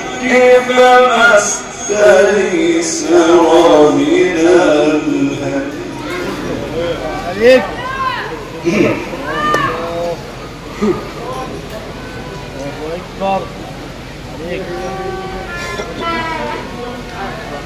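A man chants in a long, drawn-out melodic voice through a loudspeaker, in an echoing hall.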